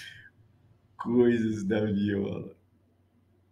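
An elderly man laughs softly.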